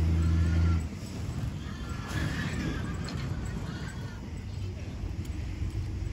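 A motorcycle engine hums in the distance, slowly coming closer.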